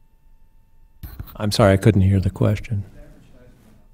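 An older man in an audience speaks briefly and calmly, a little way off.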